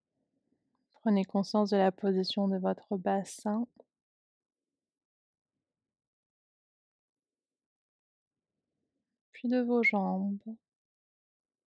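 A young woman speaks calmly and softly, close by.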